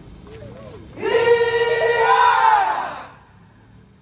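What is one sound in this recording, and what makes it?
A group of men shout together in a long chant.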